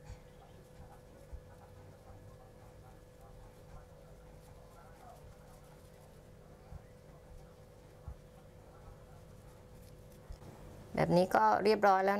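Cloth rustles softly as it is gathered and tied.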